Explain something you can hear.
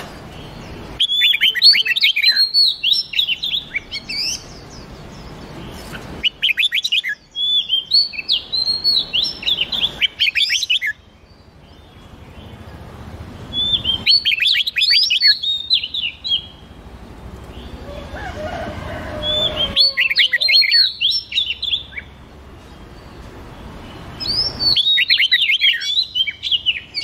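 Songbirds sing in bursts of quick, bright warbling phrases, with pauses between.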